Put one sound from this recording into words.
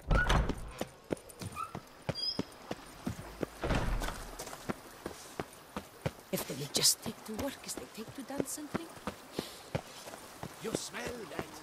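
Quick footsteps run steadily over stone paving.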